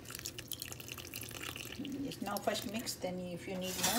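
Flour pours softly from a mug into a glass bowl.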